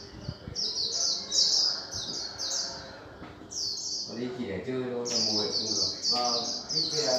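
Caged birds chirp and sing rapidly.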